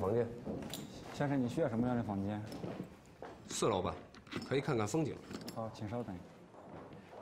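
A man answers politely in a calm voice.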